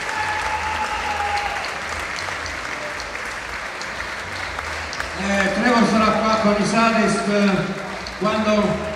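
A band plays amplified music with drums in a large echoing hall.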